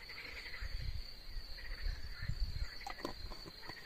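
Liquid pours from a bottle into a bowl of bait.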